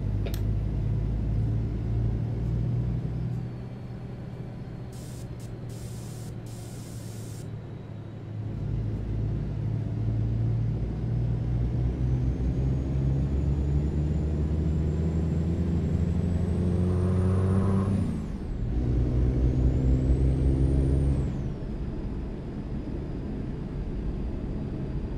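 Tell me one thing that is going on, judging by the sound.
A truck engine hums and rumbles steadily, rising and falling in pitch as it shifts gears.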